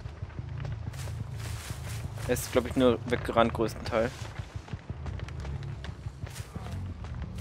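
Heavy footsteps thud steadily on the ground.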